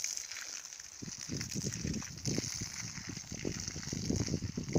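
Dry leaves crunch underfoot.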